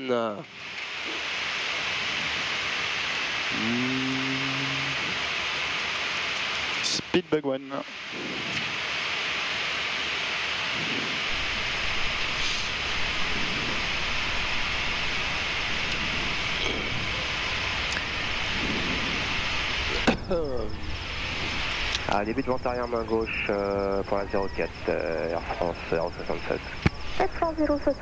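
A man speaks over a headset radio.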